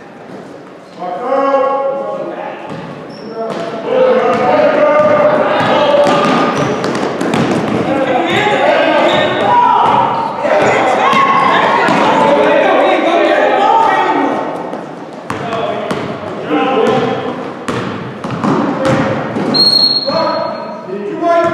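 Several young men shout and call out across an echoing hall.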